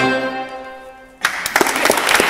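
An accordion plays a held chord that fades away.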